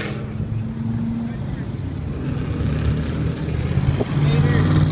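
A V10 Dodge Viper accelerates past.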